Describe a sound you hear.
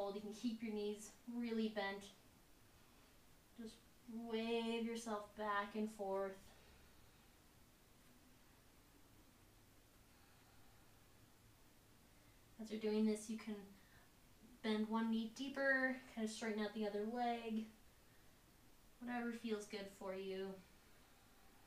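A young woman speaks calmly and slowly, giving instructions.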